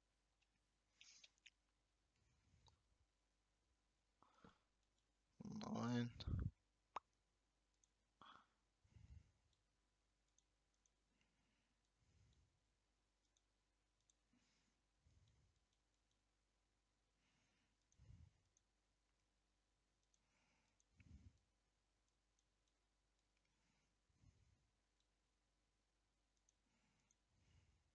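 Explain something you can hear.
A man speaks briefly into a microphone, in short bursts with long pauses.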